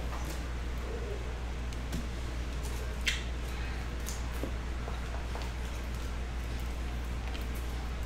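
Cards rustle and slide between fingers.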